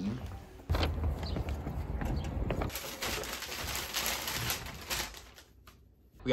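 Paper crinkles and rustles as a package is unwrapped.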